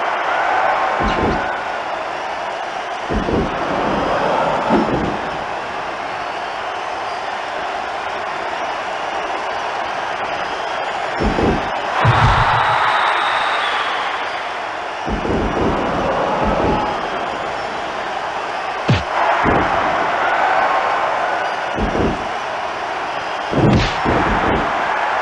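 Heavy thuds of bodies hitting the mat ring out now and then.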